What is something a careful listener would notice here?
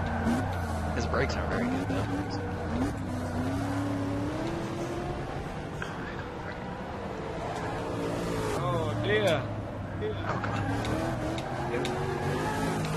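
A race car engine revs high and shifts through gears.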